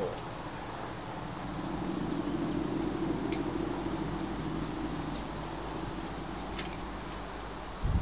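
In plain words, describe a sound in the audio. A hand can opener grinds around the rim of a tin can.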